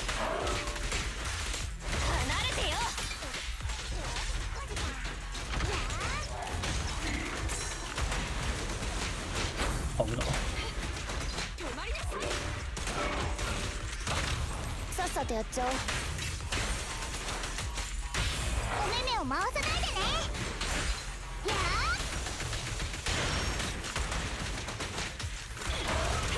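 Game combat effects whoosh, clash and explode in quick bursts.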